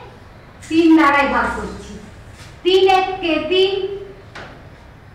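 A woman speaks clearly in a teaching tone, close by.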